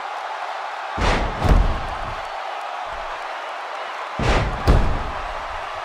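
Heavy blows land with loud thuds.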